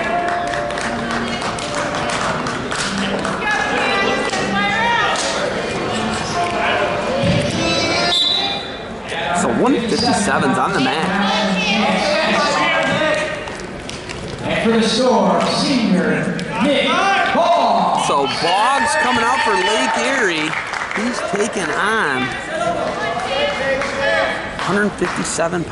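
Spectators shout and cheer loudly in an echoing gym.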